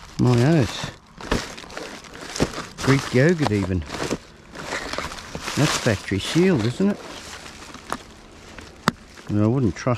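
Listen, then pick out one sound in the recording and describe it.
Paper and plastic wrappers rustle and crinkle.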